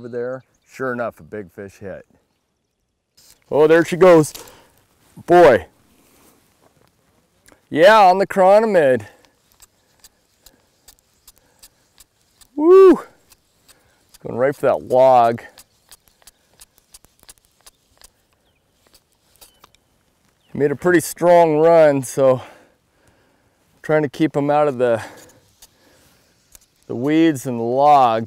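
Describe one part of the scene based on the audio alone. A man talks calmly and close to the microphone, with pauses.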